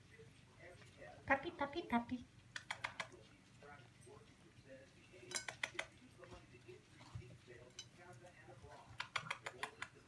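A dog crunches dry kibble from a plate.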